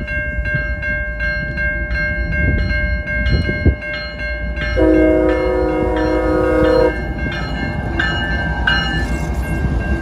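A railway crossing bell rings rapidly and steadily.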